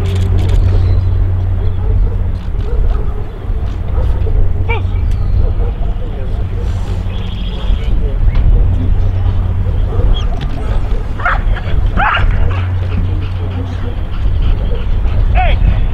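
A man calls short commands to a dog from a distance.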